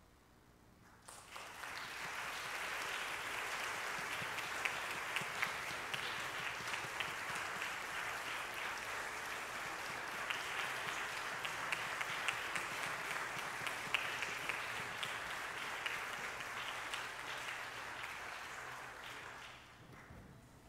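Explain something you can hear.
An audience claps and applauds in a large echoing hall.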